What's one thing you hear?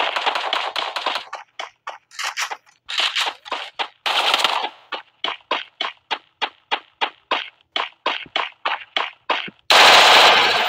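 A video game character's footsteps run on concrete.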